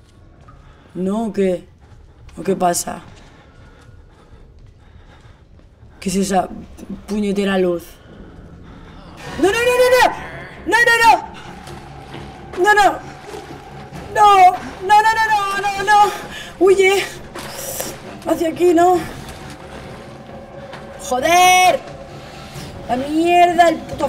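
A young woman speaks into a headset microphone, reacting with animation and alarm.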